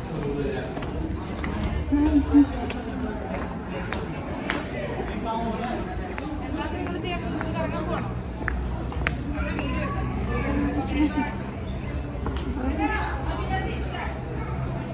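Footsteps scuff on stone paving.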